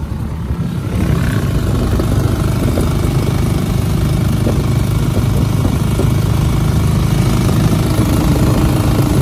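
Wind rumbles loudly against the microphone while riding.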